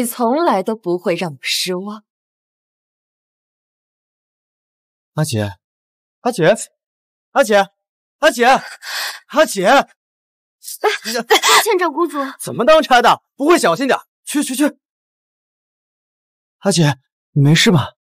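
A young woman speaks in short, clear lines with pauses between them.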